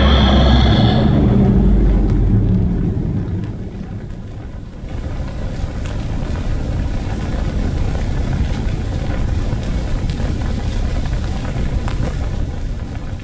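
Torch flames crackle and flicker softly.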